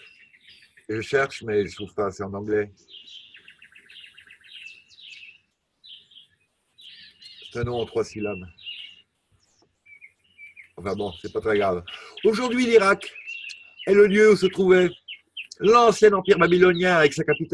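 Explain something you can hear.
An elderly man speaks calmly through a webcam microphone, in bursts with pauses.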